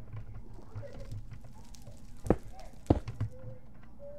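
Stone blocks are set down with short dull knocks.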